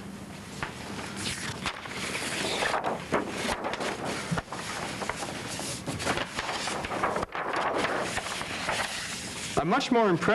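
Large sheets of paper rustle and slide.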